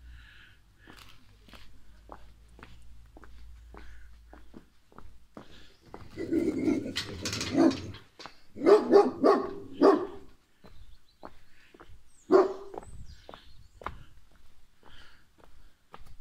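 Footsteps crunch steadily on a cobbled path outdoors.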